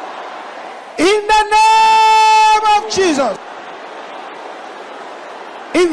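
A man preaches forcefully through a microphone.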